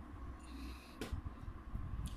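A laptop lid snaps shut with a short click.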